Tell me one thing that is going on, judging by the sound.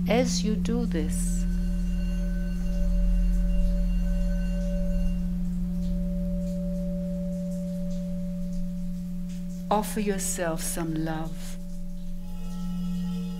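Singing bowls ring with a steady, humming drone.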